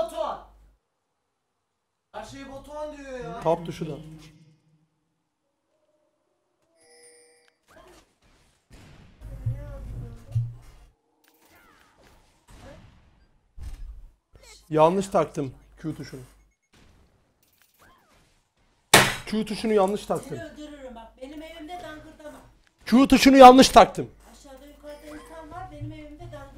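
A young man talks with animation into a microphone, in bursts with pauses.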